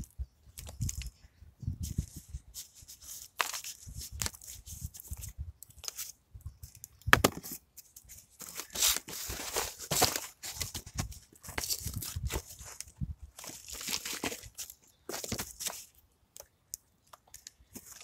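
Gloved fingers crumble soil with a soft gritty rustle.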